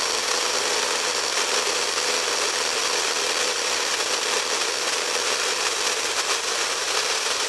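A radio loudspeaker hisses with steady static.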